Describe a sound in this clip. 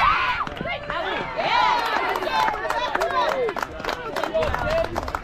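Young women shout and cheer outdoors.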